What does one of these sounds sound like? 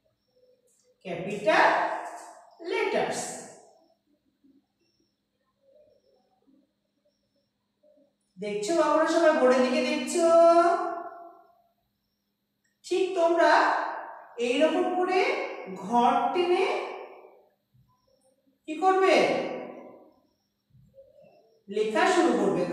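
A woman speaks slowly and clearly, as if teaching, close by.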